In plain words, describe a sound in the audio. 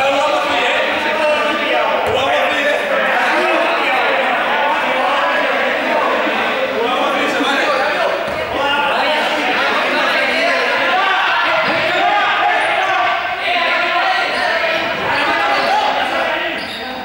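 Many children shout and chatter, echoing in a large hall.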